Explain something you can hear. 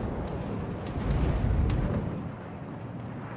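Shells explode with rumbling blasts.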